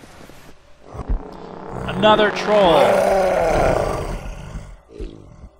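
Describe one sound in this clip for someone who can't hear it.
A large beast roars loudly and deeply.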